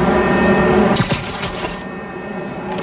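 A web line zips with a short whoosh.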